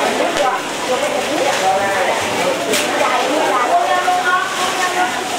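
A crowd of women chatter loudly and overlapping nearby.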